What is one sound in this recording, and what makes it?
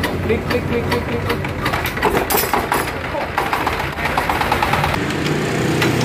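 Metal clanks and knocks.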